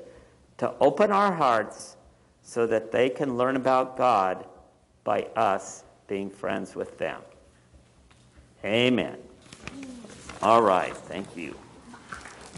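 A man reads aloud calmly through a microphone.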